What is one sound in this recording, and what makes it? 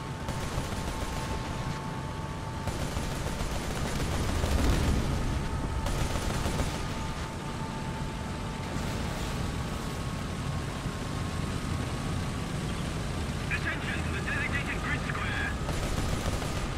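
Tank tracks clank and rattle over the ground.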